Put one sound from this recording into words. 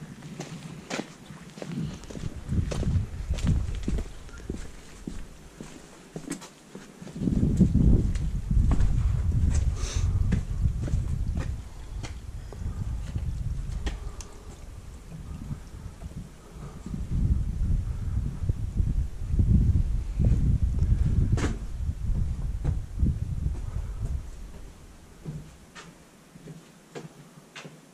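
Footsteps crunch and tap on a stone path.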